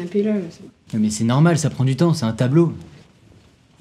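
A young man speaks calmly close by.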